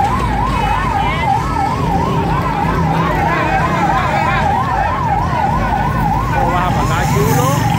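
Motorcycle engines run.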